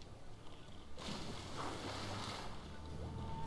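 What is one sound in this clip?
A body plunges into water with a splash.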